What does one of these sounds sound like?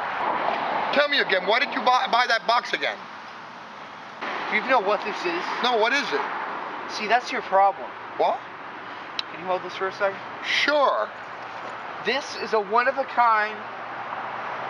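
A young man talks back in reply.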